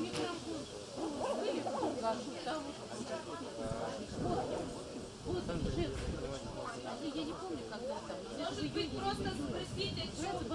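A woman speaks quietly close by, outdoors.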